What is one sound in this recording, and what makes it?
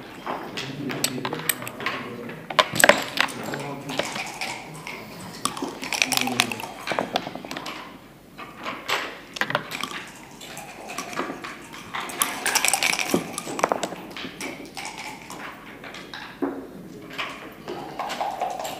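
Checkers click against a wooden board as they are moved.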